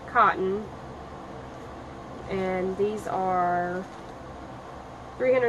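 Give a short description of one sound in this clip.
A woman speaks close by in drawn-out, sing-song tones.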